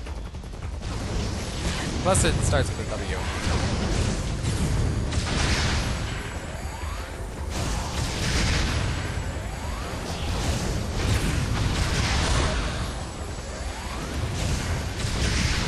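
Energy weapon blasts fire again and again.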